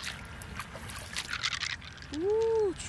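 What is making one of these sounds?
Water trickles and splashes onto a shell.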